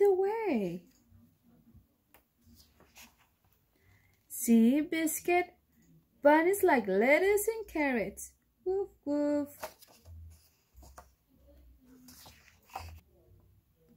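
A book page turns with a soft paper rustle.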